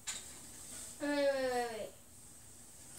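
A young child calls out in a high, falling voice nearby.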